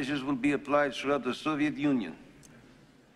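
A man speaks calmly and firmly.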